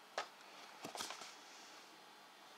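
A cardboard box is handled and rustles.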